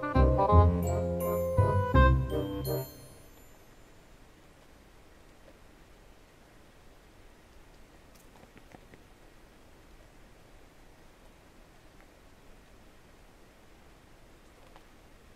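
A cat licks its fur softly.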